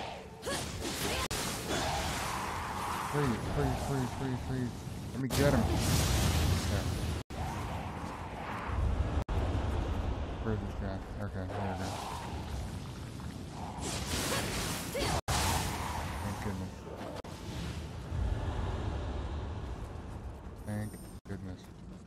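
Swords clash and strike in a noisy fight.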